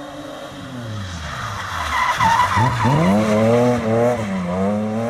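Car tyres screech on tarmac as the car slides past.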